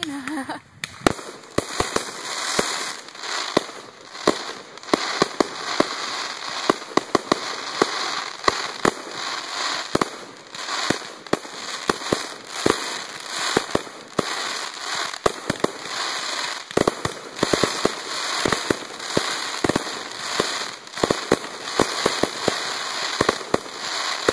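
Fireworks bang and pop in quick bursts.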